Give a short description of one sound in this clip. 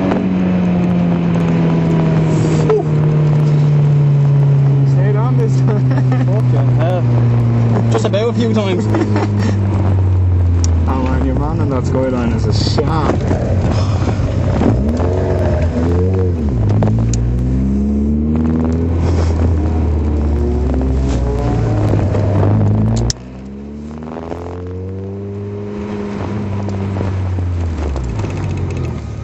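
A car engine roars up close, rising and falling in pitch as it revs and changes gear.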